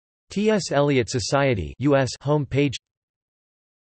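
A man speaks calmly and clearly, close up.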